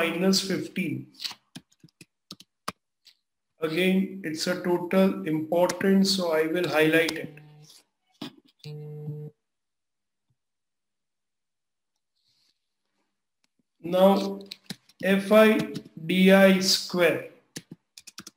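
A man explains calmly into a close microphone, pausing between phrases.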